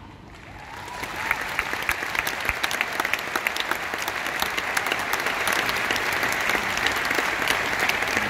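A large crowd claps and cheers in a big echoing arena, growing louder.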